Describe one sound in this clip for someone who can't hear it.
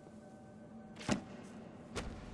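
A book snaps shut.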